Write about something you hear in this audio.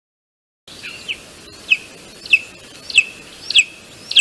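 A bird gives short, high calls at a steady pace, close by.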